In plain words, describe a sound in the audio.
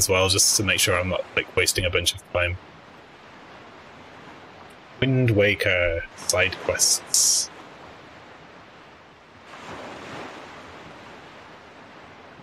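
Waves wash softly against a shore.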